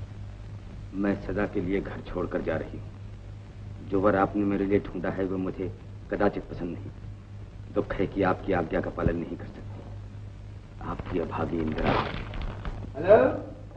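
A middle-aged man reads a letter aloud in a slow, measured voice.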